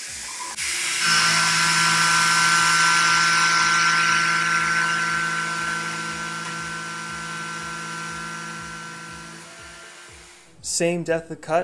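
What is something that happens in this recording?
A milling machine cutter whines steadily as it cuts into metal.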